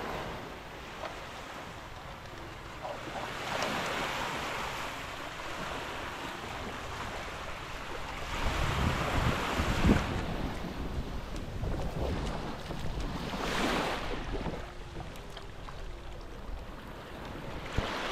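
Small waves wash gently onto a sandy shore.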